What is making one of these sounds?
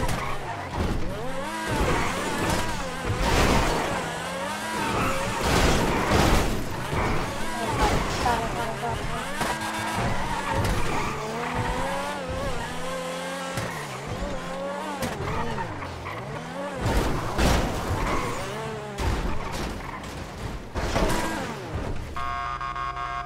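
A sports car engine revs hard, its pitch rising and falling as it races through gears.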